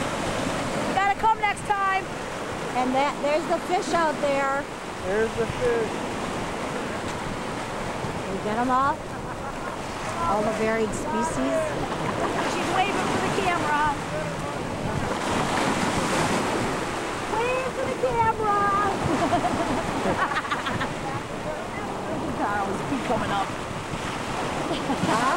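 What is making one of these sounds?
Waves wash and break against the shore.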